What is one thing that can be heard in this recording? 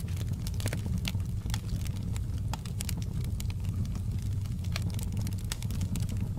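A wood fire roars steadily.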